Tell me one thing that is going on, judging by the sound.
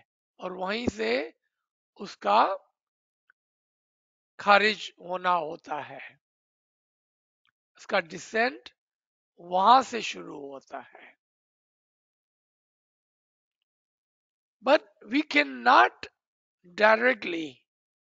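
A man speaks calmly through an online call, with pauses.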